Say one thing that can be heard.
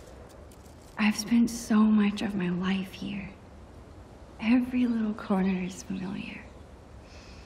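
A young woman speaks calmly and thoughtfully, heard close up.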